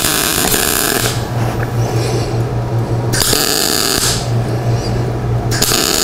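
A welding torch crackles and sizzles in short bursts.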